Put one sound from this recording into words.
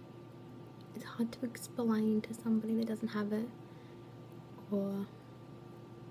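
A young woman speaks softly and close to a microphone.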